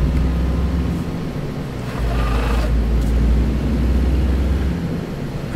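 A truck engine rumbles low and steady as the truck drives.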